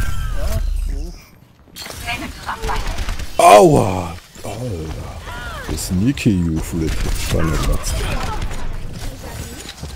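Video game gunshots fire in rapid bursts.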